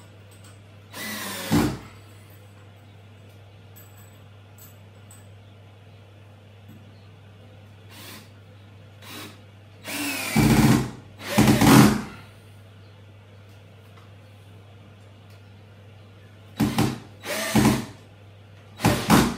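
A power tool whirs in short bursts against a wall.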